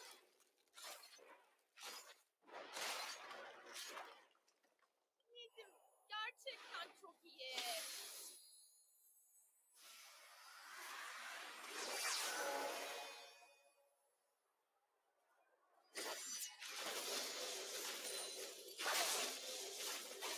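Magic spells whoosh and crackle in bursts during a fight.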